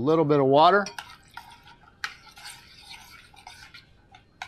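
A spoon stirs and scrapes in a metal pot.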